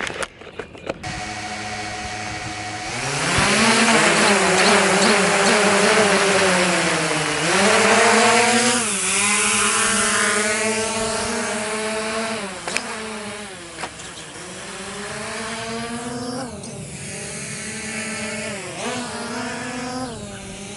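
A small drone's propellers whine and buzz close by, rising and falling in pitch as it takes off and flies away.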